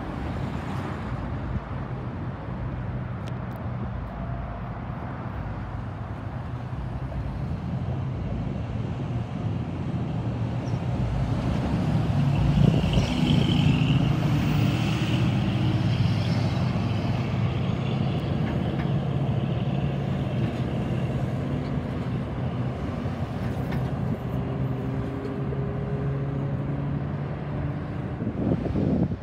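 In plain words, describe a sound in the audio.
Traffic rumbles past on a busy road outdoors.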